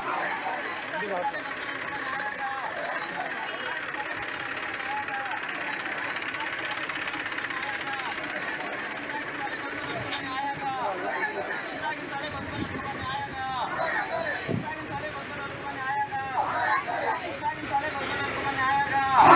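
A crowd of men and women chant slogans together outdoors.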